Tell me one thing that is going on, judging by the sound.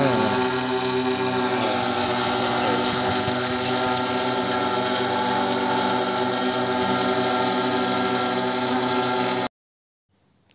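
A drone's propellers whir loudly overhead in a steady drone.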